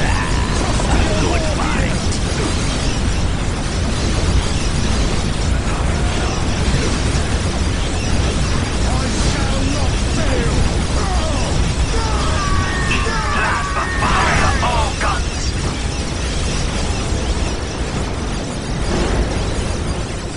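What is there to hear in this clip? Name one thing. Guns fire in rapid bursts during a battle.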